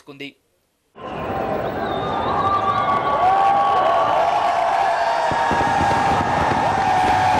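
A crowd cheers and shouts loudly in a large stadium.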